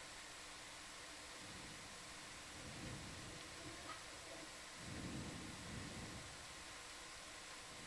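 A machine hums steadily underwater.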